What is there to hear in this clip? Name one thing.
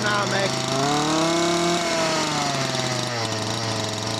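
A chainsaw engine revs up briefly and settles back.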